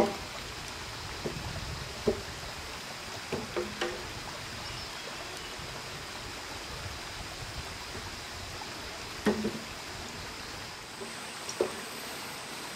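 Wooden poles knock and clatter as they are pulled loose and dropped.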